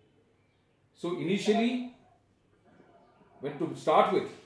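An older man speaks with animation, close by.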